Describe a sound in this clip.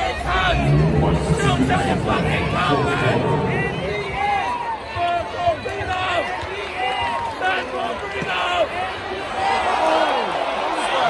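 A young man chants loudly through a megaphone.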